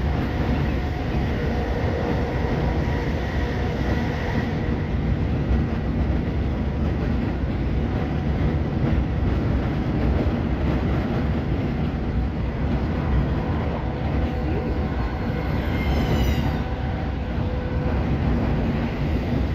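A train rumbles steadily along the rails, heard from inside a carriage.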